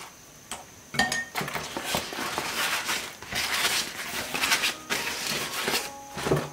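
Large leaves rustle and crinkle as they are folded.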